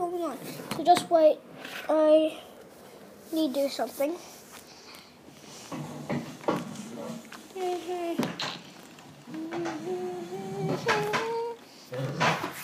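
A young boy talks excitedly close to the microphone.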